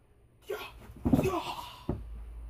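A body thuds onto the floor.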